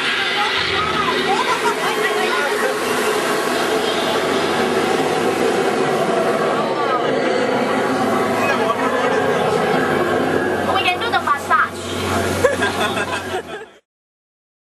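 Water gushes and splashes loudly.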